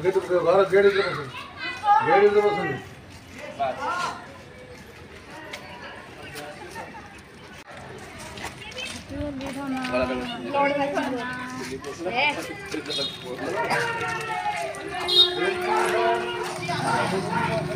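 Women and men talk and shout excitedly close by, outdoors.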